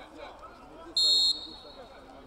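A referee's whistle blows one short, sharp blast.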